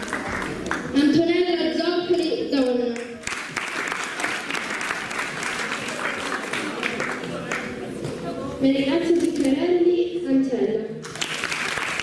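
A young girl speaks briefly through a microphone and loudspeakers.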